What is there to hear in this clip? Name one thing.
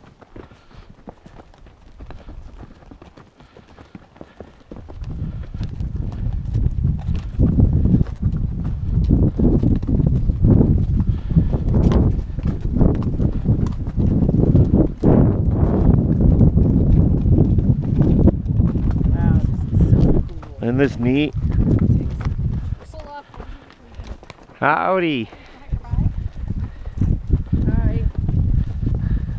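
Horse hooves clop steadily on rocky ground close by.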